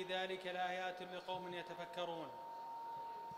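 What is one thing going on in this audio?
A man recites loudly through a microphone and loudspeakers in a large room.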